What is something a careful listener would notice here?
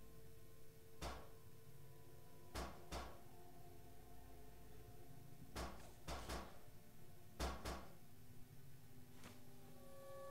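Small items clink and rattle as they are picked up one after another.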